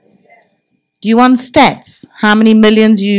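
A middle-aged woman speaks loudly and with emotion into a microphone.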